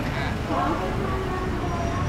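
A motorbike engine idles nearby.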